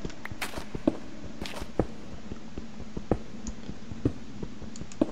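A pickaxe taps repeatedly on stone in a game.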